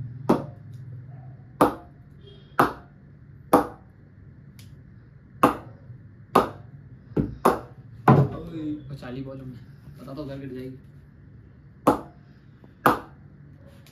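A ball knocks sharply against a wooden bat at a steady pace.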